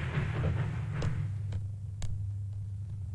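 A rubber ball bounces on a hard floor.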